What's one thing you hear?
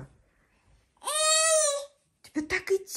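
A toddler squeals and babbles excitedly.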